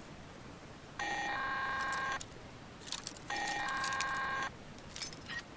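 A lock rattles and grinds as it is forced to turn.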